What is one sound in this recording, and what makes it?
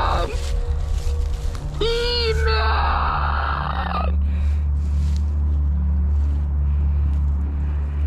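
Footsteps crunch and rustle through dry fallen leaves.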